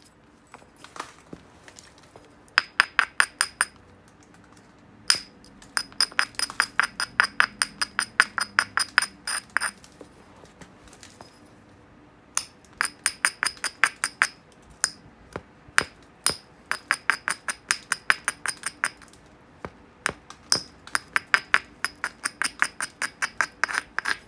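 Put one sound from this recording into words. A hand tool clicks rapidly and sharply against a surface, in short bursts.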